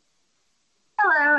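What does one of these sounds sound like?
A woman begins speaking over an online call.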